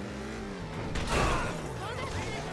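A car bumps and scrapes hard against a wall.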